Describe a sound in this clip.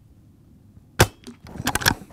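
A rifle fires a single sharp shot close by.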